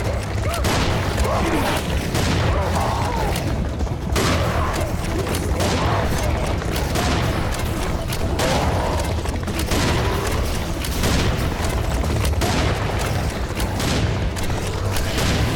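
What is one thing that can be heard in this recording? Creatures screech and growl close by.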